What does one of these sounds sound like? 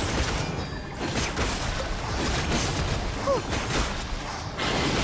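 Sharp magical hits strike in quick bursts.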